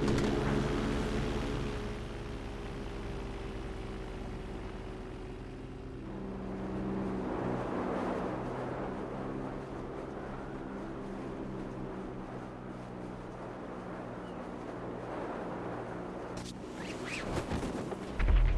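Wind rushes loudly past a falling skydiver.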